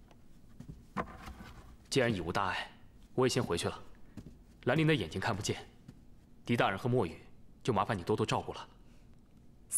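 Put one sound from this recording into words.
A young man speaks calmly and clearly.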